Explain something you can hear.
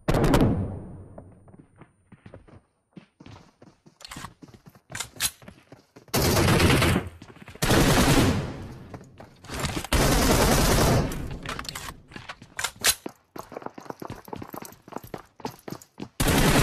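Footsteps patter quickly on hard floors and stairs.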